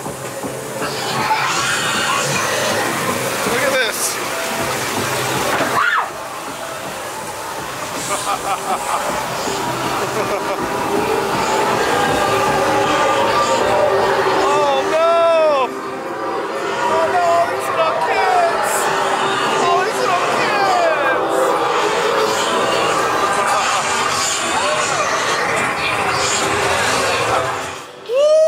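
Young women scream and shriek nearby.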